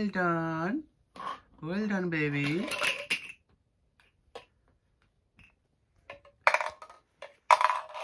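Small plastic toy pieces clatter on the floor.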